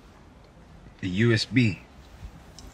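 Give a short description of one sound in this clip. A second man answers with animation.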